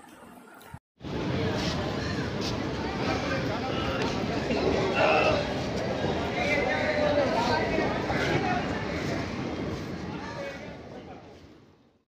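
A train rumbles and rattles past on the tracks.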